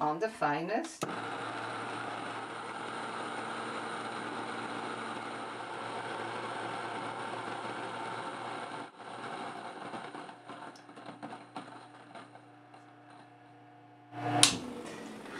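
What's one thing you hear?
A grain mill whirs steadily, then winds down.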